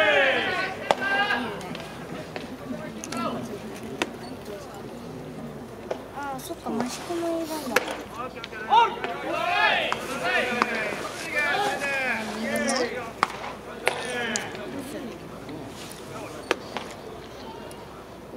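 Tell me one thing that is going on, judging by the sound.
A crowd of spectators shouts and chants in the distance outdoors.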